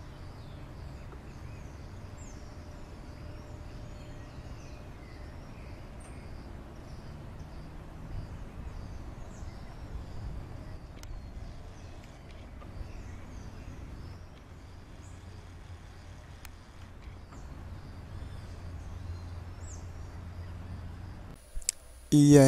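Small birds chirp softly outdoors.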